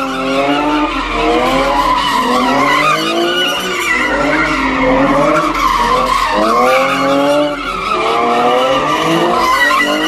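Tyres screech on asphalt.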